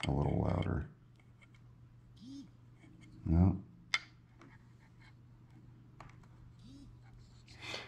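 Small metal parts click and tap as a flashlight is handled.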